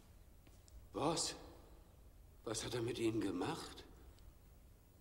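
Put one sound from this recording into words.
A man speaks quietly and hesitantly, close by.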